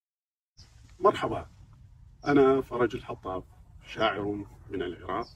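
A middle-aged man speaks calmly and clearly, close to a microphone.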